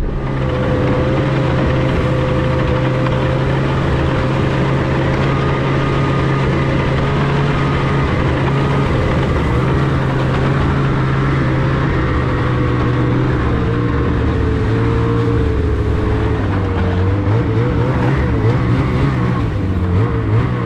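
A snowmobile engine drones while cruising.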